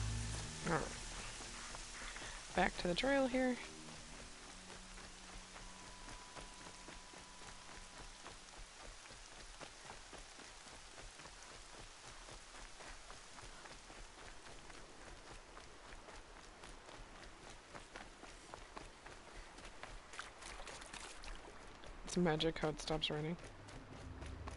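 Quick running footsteps patter over wet ground.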